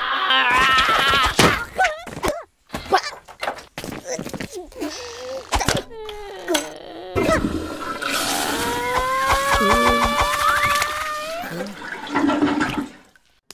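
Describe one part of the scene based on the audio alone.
A vampire character shrieks loudly.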